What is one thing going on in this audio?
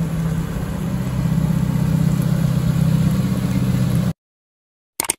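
A car engine idles nearby with a low, steady hum.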